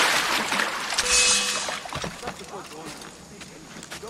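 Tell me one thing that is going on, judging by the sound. Wooden rungs creak as a man climbs a ladder.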